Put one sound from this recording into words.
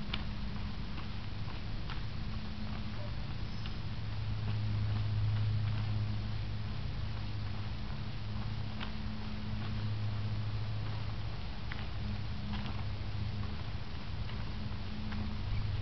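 Feet shuffle softly on dry ground.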